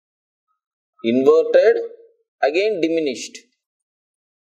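A man speaks clearly and steadily into a close microphone.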